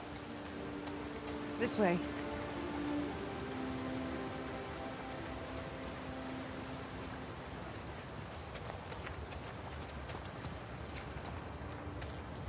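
Footsteps tread on grass and leaves.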